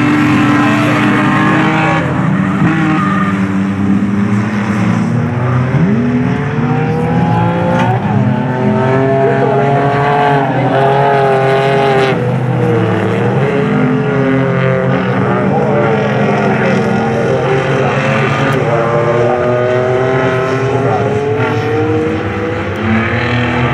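Racing car engines roar and rev as the cars speed around a track.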